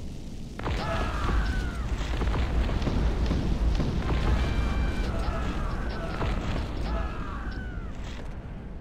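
Musket shots crack in rapid, scattered volleys.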